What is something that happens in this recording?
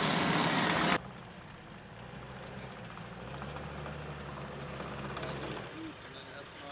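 A military vehicle drives across grass in the distance.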